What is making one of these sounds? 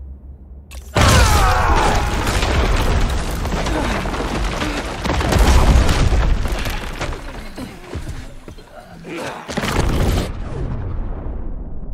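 Blows, crashes and debris clatter in a fight.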